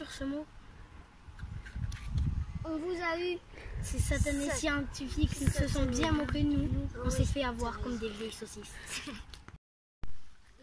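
Young children talk close by, with animation.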